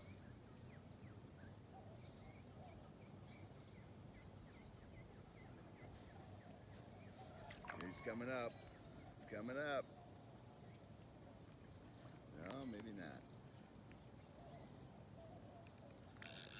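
Water laps softly outdoors.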